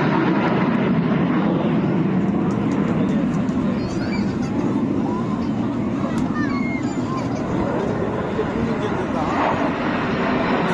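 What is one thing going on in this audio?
Jet planes roar loudly overhead.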